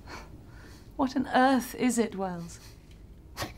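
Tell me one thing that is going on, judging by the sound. A woman speaks warmly and with amusement, close by.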